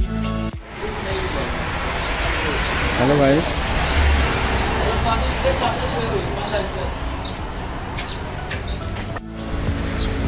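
A man talks close by, casually.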